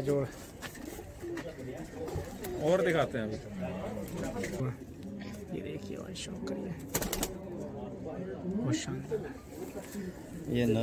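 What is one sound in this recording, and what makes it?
Men talk nearby in casual, animated voices.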